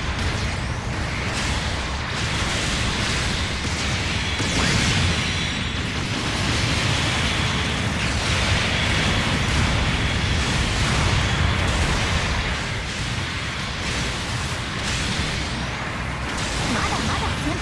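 Beam weapons fire with sharp electronic blasts.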